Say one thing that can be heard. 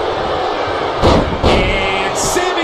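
A body slams heavily onto a wrestling mat with loud thuds.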